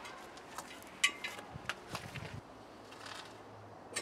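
A metal frame rattles and clanks as it is dragged over paving.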